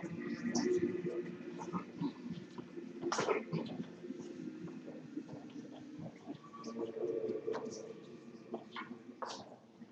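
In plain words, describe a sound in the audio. A choir sings a slow chant, echoing in a large hall.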